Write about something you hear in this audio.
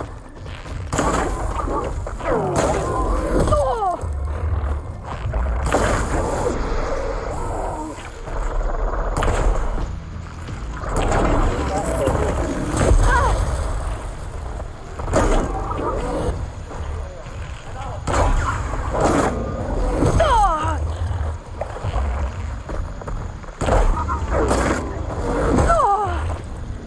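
Arrows whoosh from a bow and strike with sharp impacts.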